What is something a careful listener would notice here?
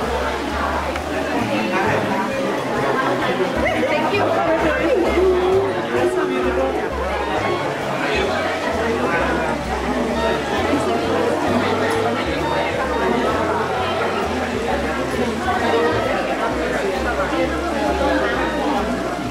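A crowd of men and women chatter throughout.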